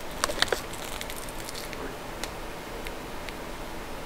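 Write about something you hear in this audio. A chocolate is dipped into a jar of thick chocolate spread with sticky squelches.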